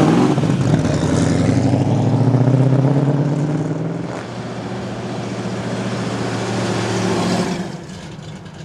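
A powerful car engine revs up with a deep, throaty roar as it pulls away.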